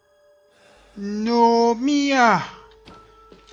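A young woman cries out in pain close by.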